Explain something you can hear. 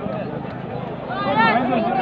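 A crowd of people talk nearby.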